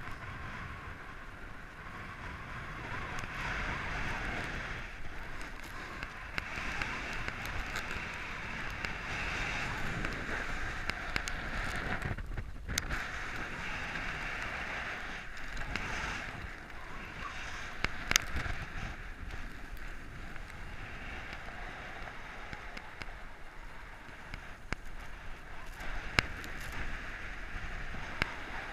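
Wind rushes and buffets against the microphone.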